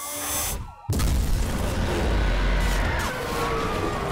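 Metal crashes as a car smashes through a roadblock.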